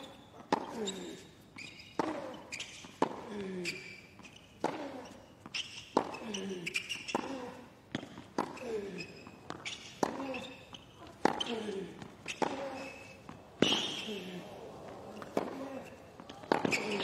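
Tennis rackets strike a ball back and forth in a quick rally.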